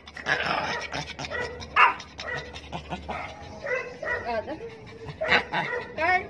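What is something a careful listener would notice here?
A small dog howls and whines close by.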